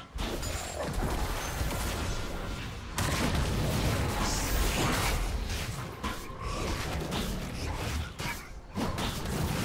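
Sharp game sound effects of spells and strikes ring out during a fight.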